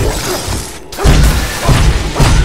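Ice shatters with a loud crackling burst.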